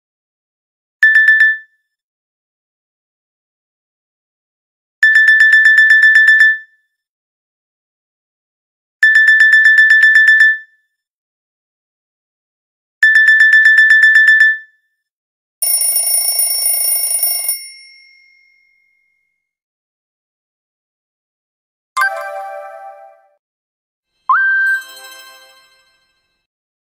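A mobile phone plays a series of short, bright electronic alert tones with pauses between them.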